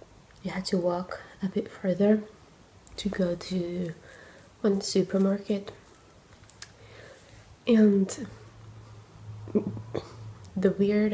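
A young woman talks casually and close to a microphone.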